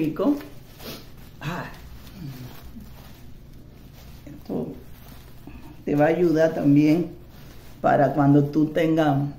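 A middle-aged woman speaks calmly.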